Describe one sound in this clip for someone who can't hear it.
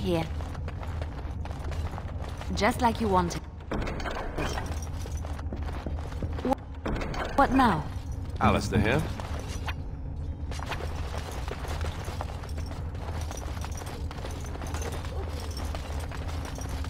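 Footsteps walk across a stone floor.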